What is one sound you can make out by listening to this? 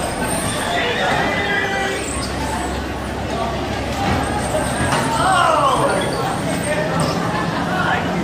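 Bumper cars hum and roll across the floor.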